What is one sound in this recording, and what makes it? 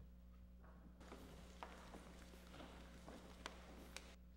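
Footsteps shuffle across a floor.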